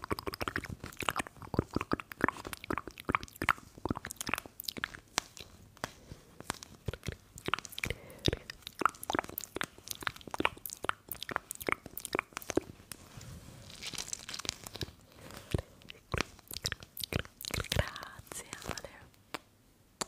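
Fingernails tap and scratch on a crinkly plastic gel pack close to a microphone.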